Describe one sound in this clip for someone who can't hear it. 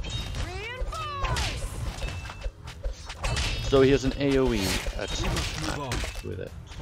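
Weapons clash and clang in a small battle.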